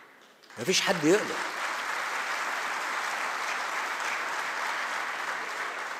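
A large audience applauds in a big hall.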